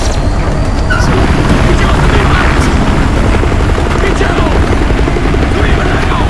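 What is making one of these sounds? A helicopter's rotor thumps close by.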